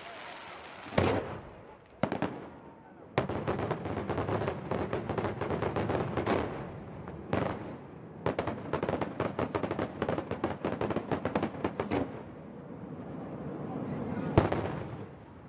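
Loud firework booms thud and echo.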